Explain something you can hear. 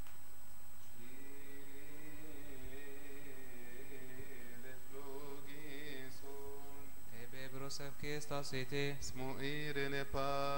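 Men chant together in a slow, steady melody in an echoing hall.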